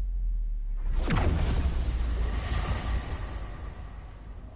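A huge explosion booms and roars.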